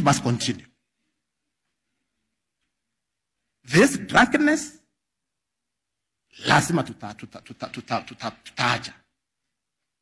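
A middle-aged man speaks forcefully into a microphone in short bursts, with pauses between.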